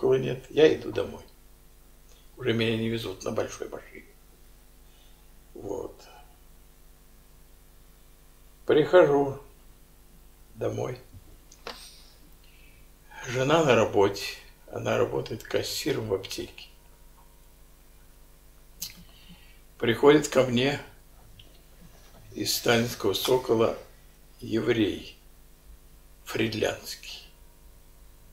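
An elderly man speaks close by, slowly and with pauses.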